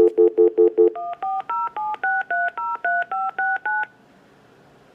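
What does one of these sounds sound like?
A telephone dials a number with a quick run of touch tones on its speaker.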